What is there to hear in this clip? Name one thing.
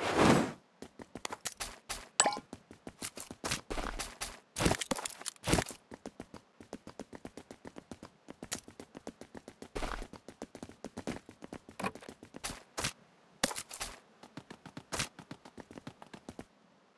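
Quick footsteps tap steadily on a hard floor.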